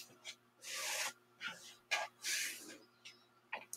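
Cloth rustles softly.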